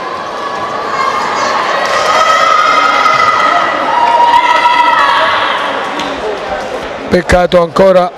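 A crowd chants and cheers loudly in a large echoing hall.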